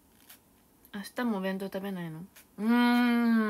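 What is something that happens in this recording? A young woman squeals and laughs close by.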